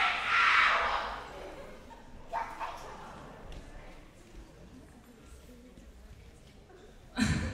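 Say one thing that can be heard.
A young man speaks through a microphone in a large hall.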